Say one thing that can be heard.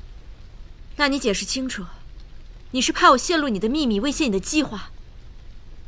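A young woman speaks nearby, questioning sharply.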